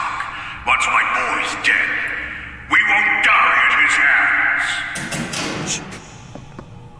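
A magical glow shimmers and swells with bright whooshing bursts.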